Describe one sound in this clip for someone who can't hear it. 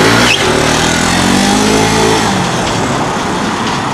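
A scooter engine revs and pulls away.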